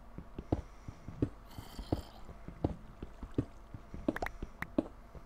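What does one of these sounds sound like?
Footsteps thud steadily on stone.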